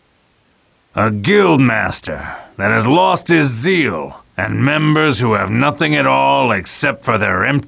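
A man narrates calmly.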